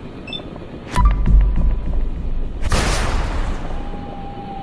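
A heavy blast booms and rumbles.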